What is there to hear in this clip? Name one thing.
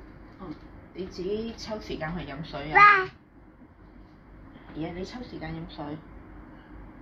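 A toddler babbles and vocalizes close by.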